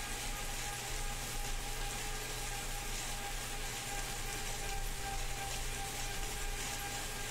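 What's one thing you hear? A bike trainer whirs steadily.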